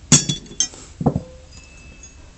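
A metal wrench is set down on a mat with a soft thud.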